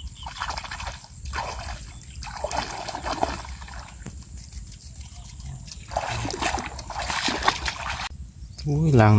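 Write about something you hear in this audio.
Water splashes as a person wades through shallow water.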